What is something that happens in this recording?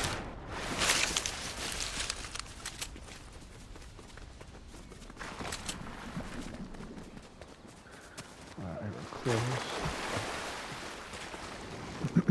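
Footsteps run through rustling grass.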